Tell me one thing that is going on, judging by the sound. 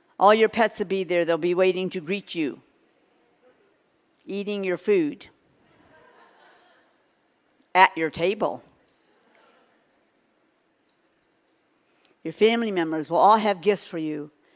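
A middle-aged woman speaks expressively into a microphone, in bursts with pauses.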